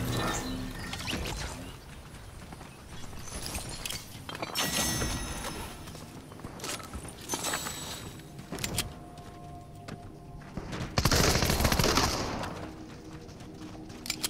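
Footsteps patter quickly across grass and dirt.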